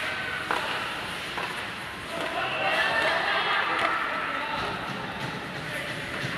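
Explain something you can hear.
Ice skates scrape and glide across the ice in a large echoing arena.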